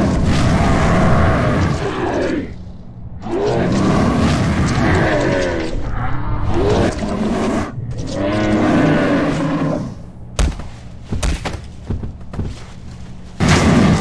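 Monstrous creatures roar and snarl as they grapple.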